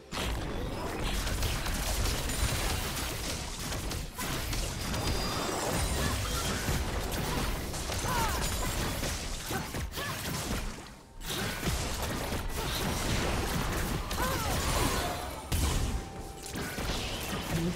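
Magic blasts and weapon hits clash in a fast video game battle.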